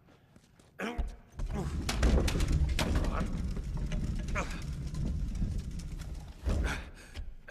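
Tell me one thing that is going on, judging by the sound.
A loaded wheeled cart rumbles as it is pushed across a hard floor.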